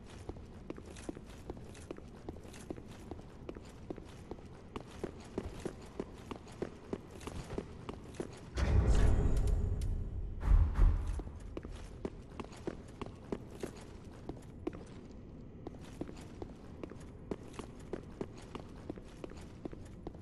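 Armoured footsteps clank steadily on stone.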